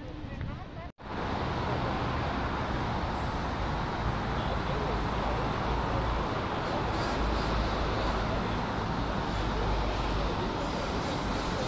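Traffic hums steadily on a nearby road.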